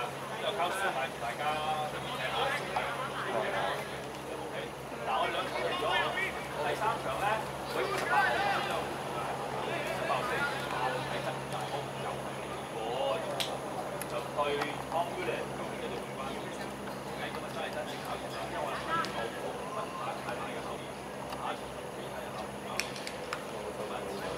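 Men shout and call to each other outdoors, some near and some farther off.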